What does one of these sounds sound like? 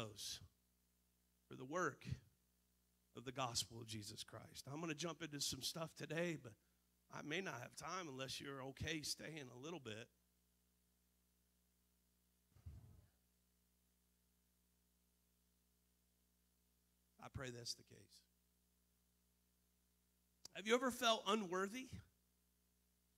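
A man speaks with animation into a microphone through a loudspeaker, with pauses.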